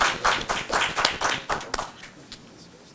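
An audience applauds in a large room.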